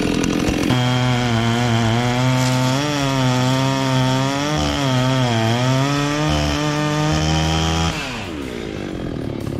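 A chainsaw engine drones steadily, shifting in pitch, then winds down.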